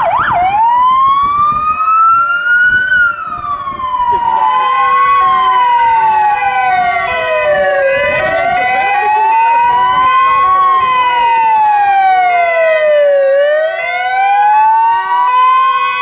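A siren wails close by, rising and falling.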